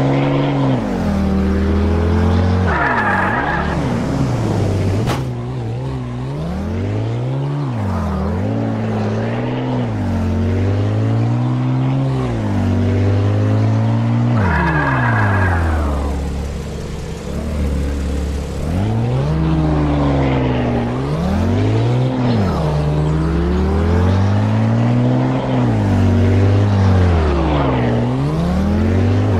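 A car engine revs up and down through the gears.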